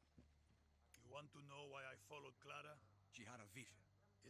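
An elderly man speaks calmly and hoarsely.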